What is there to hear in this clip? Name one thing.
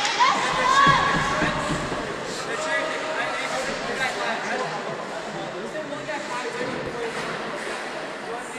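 Skates scrape and carve across the ice in a large echoing rink.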